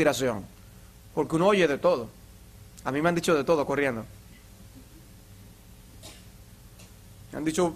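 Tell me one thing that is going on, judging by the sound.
A middle-aged man speaks calmly into a microphone in a room with slight echo.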